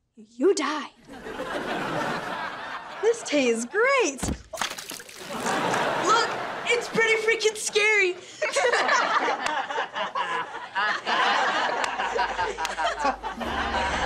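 A group of young people laugh loudly.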